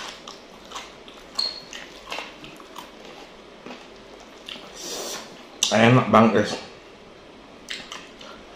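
Food crinkles and squishes as hands tear it apart close up.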